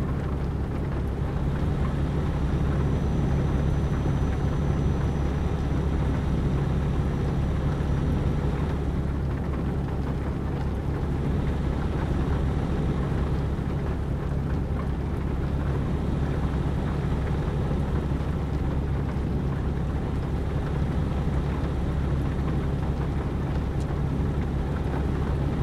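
A truck engine hums steadily and low as the truck drives along.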